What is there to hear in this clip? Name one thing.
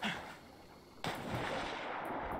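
Water splashes as a body plunges in.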